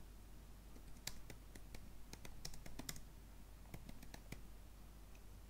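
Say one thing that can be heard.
Keys on a keyboard click rapidly as someone types.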